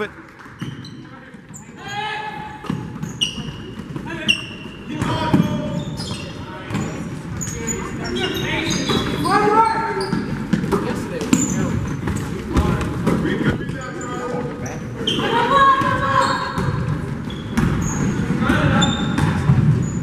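Spectators talk and shout in an echoing gym.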